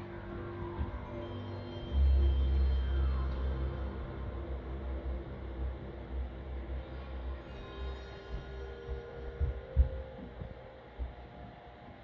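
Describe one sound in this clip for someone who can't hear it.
A game console's startup chime plays through a television's speakers, with deep swelling tones.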